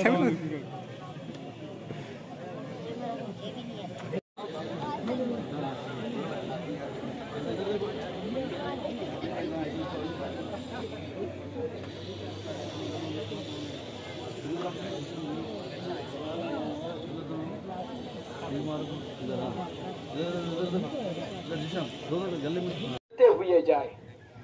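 A large crowd of men chatters all around outdoors.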